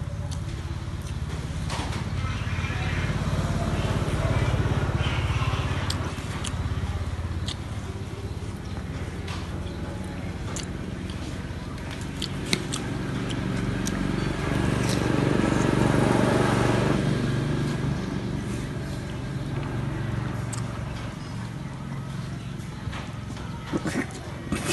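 A young woman chews food noisily.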